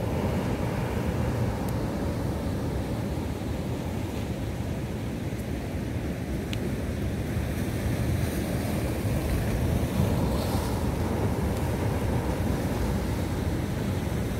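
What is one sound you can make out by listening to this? Sea waves crash and roar against rocks nearby.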